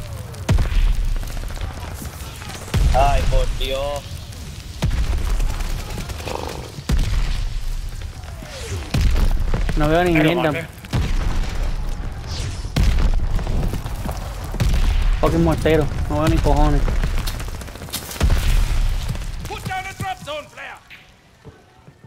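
A rifle fires loud shots in quick bursts.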